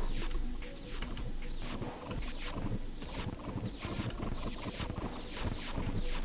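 Quick whooshing weapon swings repeat rapidly.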